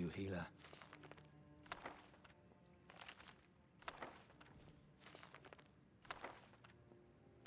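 Small objects are picked up with short, light clatters.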